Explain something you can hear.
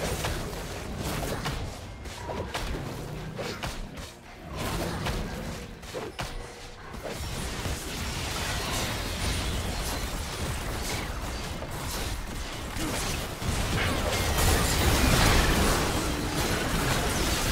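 Game sound effects of spells and blows clash and burst in a busy fight.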